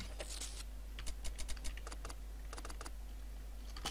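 Short menu clicks tick several times in quick succession.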